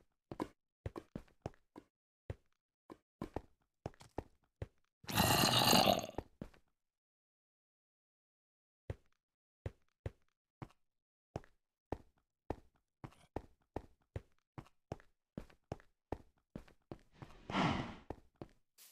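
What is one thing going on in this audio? Footsteps tread at a steady pace.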